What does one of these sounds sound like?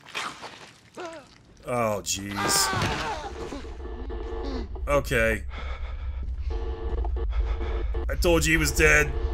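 A man screams hoarsely.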